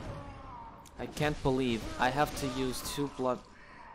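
A blade slashes into flesh with a wet, heavy thud.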